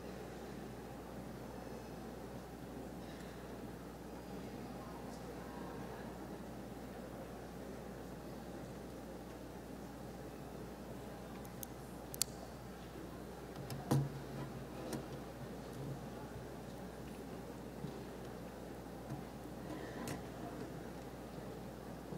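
An audience murmurs and shifts quietly in the seats.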